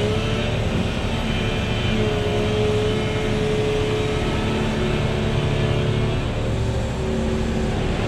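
A diesel engine of an excavator rumbles and whines steadily close by.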